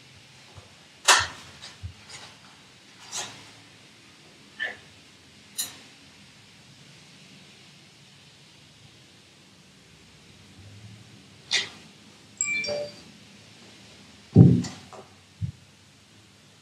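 Small objects clunk and knock sharply as they are handled.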